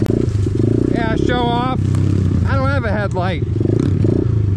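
Another dirt bike engine revs up and down shrilly ahead.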